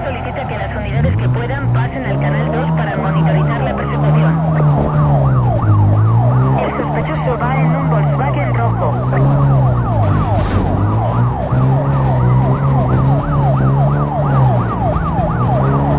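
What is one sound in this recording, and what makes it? A police siren wails slowly up and down.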